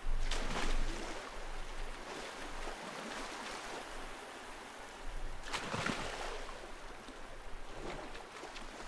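Water sloshes steadily as someone swims.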